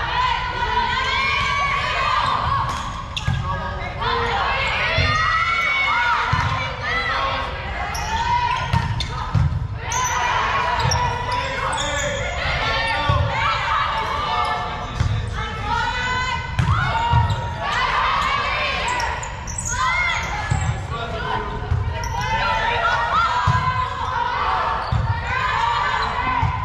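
Girls and young women shout and cheer in a large echoing gym.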